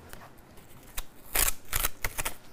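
Sandpaper rasps back and forth over a guitar fretboard.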